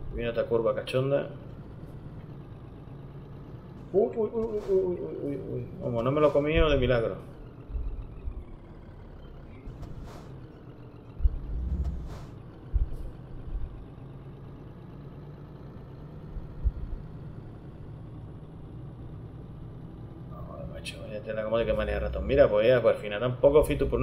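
A truck engine hums steadily as the truck drives.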